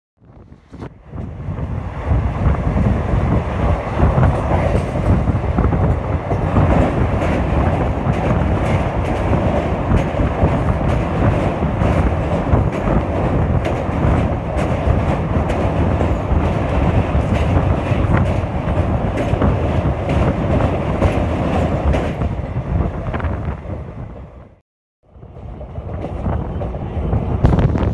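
A passenger train runs along the track, its wheels clattering.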